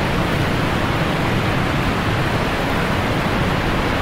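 A waterfall rushes and roars steadily.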